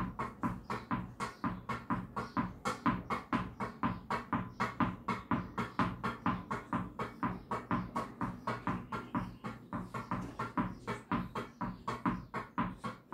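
A tennis ball is hit with a racket in a quick, steady rhythm.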